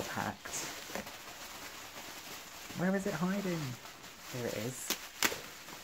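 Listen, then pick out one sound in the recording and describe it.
Bubble wrap crinkles and rustles as hands handle it.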